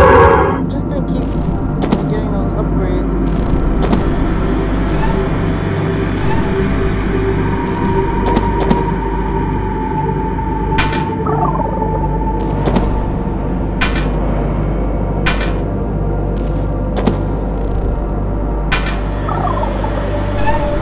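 Short electronic game sound effects blip now and then.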